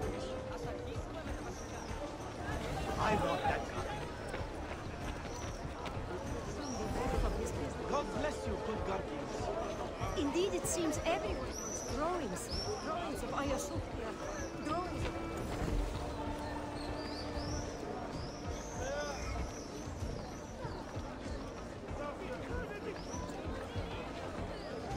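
A crowd of men and women chatter and call out all around.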